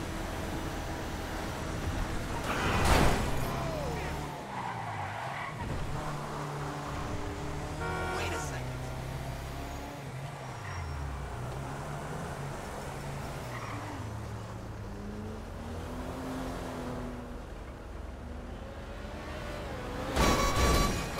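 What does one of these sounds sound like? A vehicle engine hums and revs as it drives.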